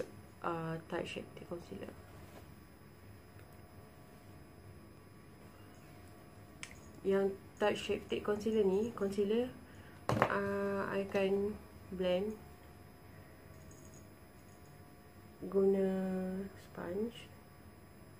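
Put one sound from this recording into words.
A young woman talks calmly and close by, in short bursts with pauses.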